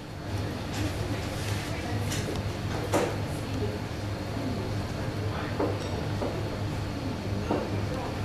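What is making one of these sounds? A ladle scrapes and spreads sauce over dough.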